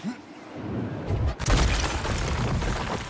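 Ice shatters with a loud crash.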